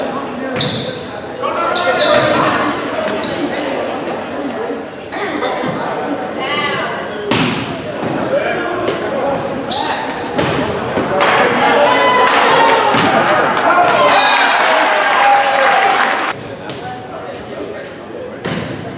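Young men call out to each other loudly.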